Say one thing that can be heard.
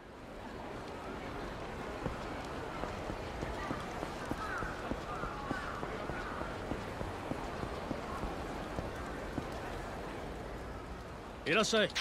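Footsteps patter quickly as a man runs.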